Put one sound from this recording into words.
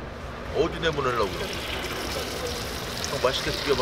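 Hot oil sizzles and crackles as food drops in.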